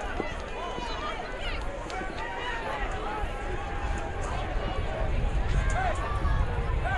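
A crowd chatters and calls out across an open-air stadium.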